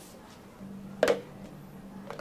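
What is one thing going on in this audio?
A plastic cup knocks down onto a hard counter.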